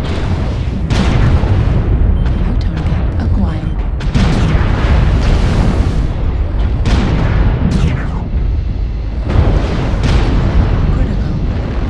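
Lasers fire in sharp bursts.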